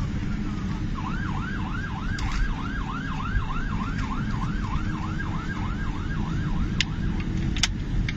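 A vehicle siren whoops quickly over and over, then stops.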